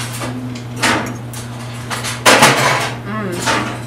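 Forks scrape and clink against plates.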